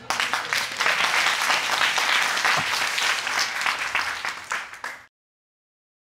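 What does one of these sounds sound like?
An audience claps and cheers loudly in a large room.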